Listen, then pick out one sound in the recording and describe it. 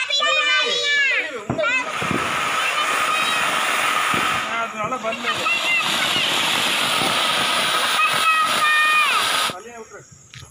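Firework fountains hiss and crackle loudly.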